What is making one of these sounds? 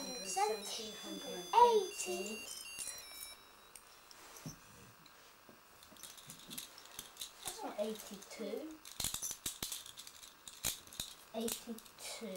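Plastic bottle caps clink and rattle together on the floor.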